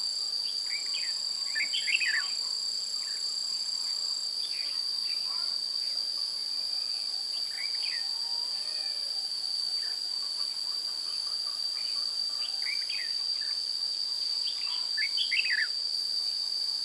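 Small birds chirp and squeak in short bursts close by.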